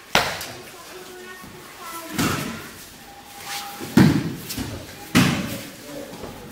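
Bodies thud onto a padded mat.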